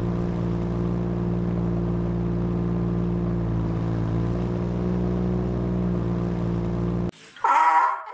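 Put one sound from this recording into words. A vehicle engine idles with a steady low hum.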